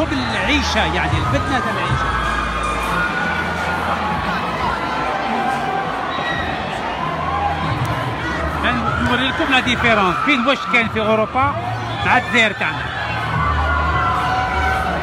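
A large crowd chatters and murmurs outdoors.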